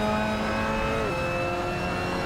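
A racing car's gearbox shifts up, and the engine pitch drops suddenly.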